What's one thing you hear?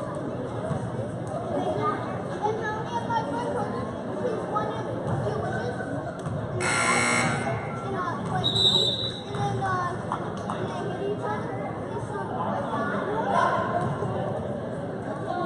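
A crowd of men, women and children chatters throughout a large echoing hall.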